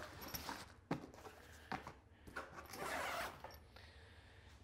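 A zipper rasps on a fabric bag.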